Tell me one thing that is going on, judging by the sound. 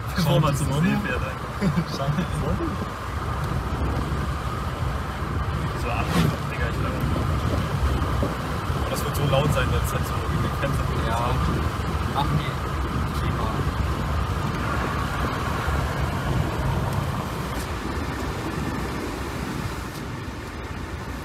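A second young man answers from the driver's seat.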